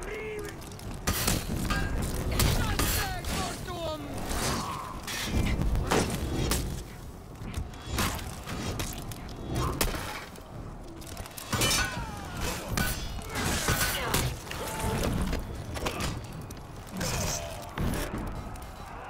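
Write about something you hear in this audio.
Swords and axes clash and strike in a noisy melee.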